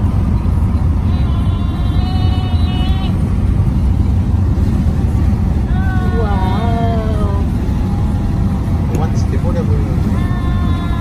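A car engine hums steadily with road rumble from inside a moving car.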